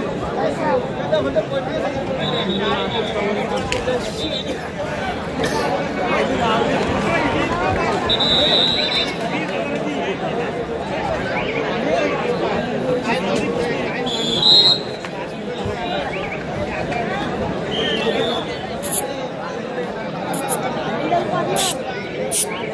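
A large crowd cheers and chatters loudly in a big echoing hall.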